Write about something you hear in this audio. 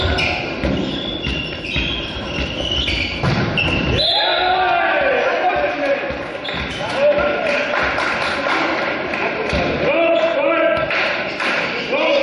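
A volleyball thumps off players' hands.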